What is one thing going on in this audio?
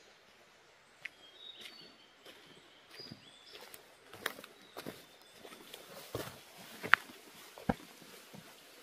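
A man's footsteps crunch on dirt and leaf litter.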